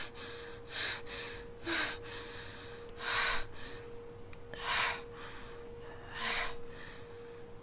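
A young woman gasps and breathes heavily in panic, close by.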